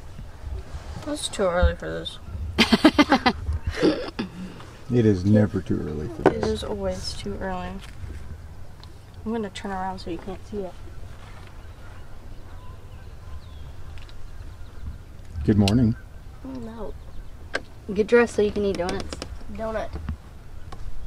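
A woman talks casually, close by.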